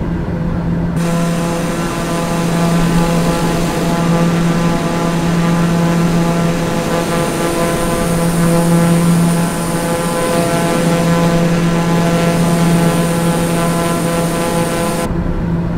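A propeller engine roars with a high steady whine, heard from outside.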